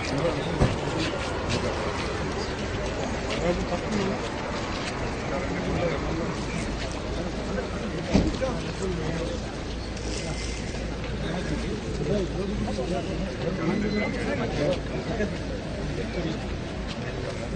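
A crowd of men talks over one another close by, outdoors.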